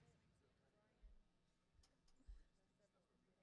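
A basketball bounces on a wooden floor a few times.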